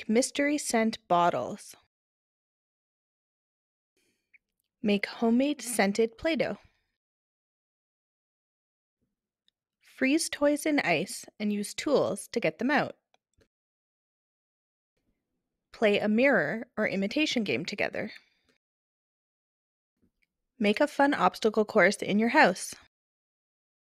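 A woman speaks calmly and clearly into a microphone, in short phrases with pauses between them.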